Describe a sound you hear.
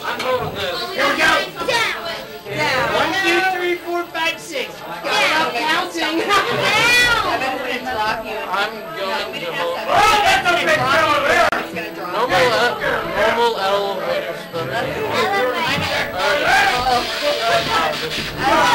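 Several young people chatter over one another close by.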